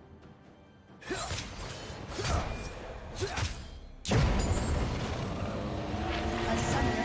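Spell effects crackle and blast in a game fight.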